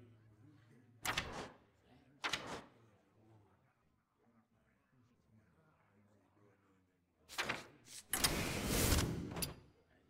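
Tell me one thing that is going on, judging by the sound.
Pages of a book flip with a quick papery swish.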